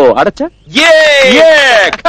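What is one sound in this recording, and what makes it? Young men clap their hands.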